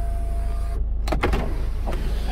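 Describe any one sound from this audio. An overhead switch clicks.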